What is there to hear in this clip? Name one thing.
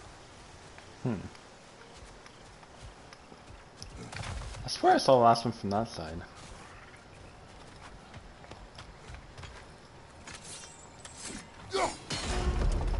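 A young man speaks into a microphone now and then.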